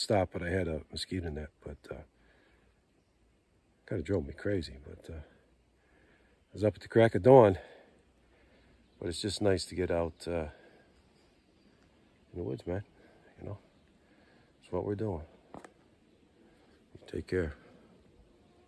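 An elderly man talks calmly, close by, in short phrases with pauses.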